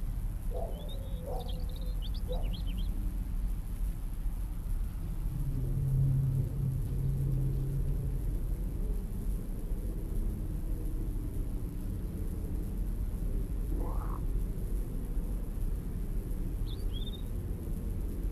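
Birds chirp briefly in the distance.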